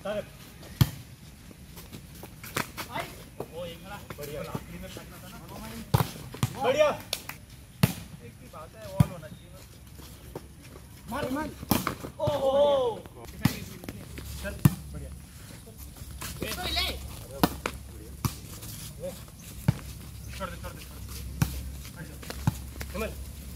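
A ball is struck with sharp thuds again and again.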